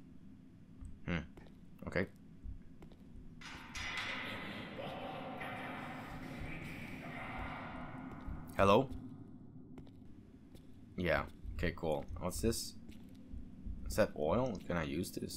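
A young man talks into a microphone with animation, close by.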